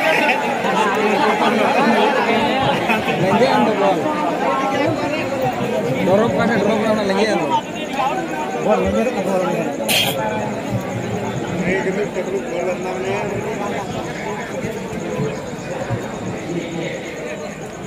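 A large crowd of spectators cheers and shouts outdoors.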